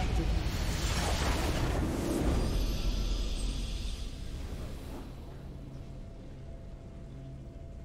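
A triumphant fanfare swells and then fades.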